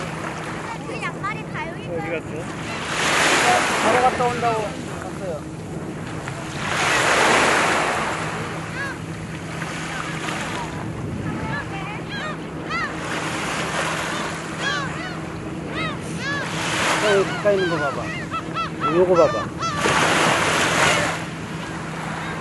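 Seagulls call repeatedly nearby and in the distance.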